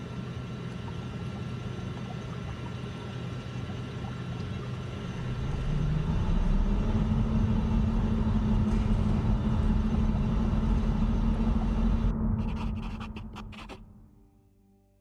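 A low machine drone hums, swells louder, then fades away.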